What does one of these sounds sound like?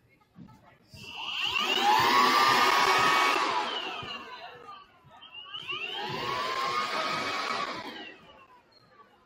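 A group of young people cheer and shout loudly.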